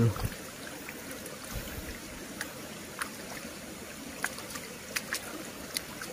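A hand splashes in shallow muddy water.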